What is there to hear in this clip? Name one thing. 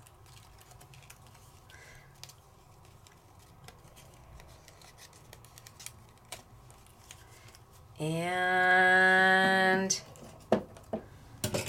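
Thin metal foil crinkles softly as small pieces are peeled away.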